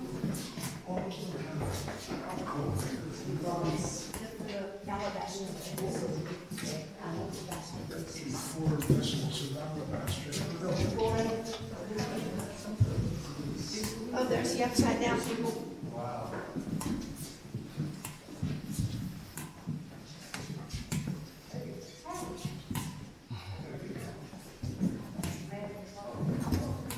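Several adults talk quietly nearby in an echoing corridor.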